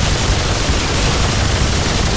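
A rapid-fire gun shoots in bursts.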